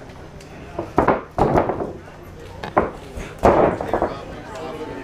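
Bodies thud heavily onto a padded mat.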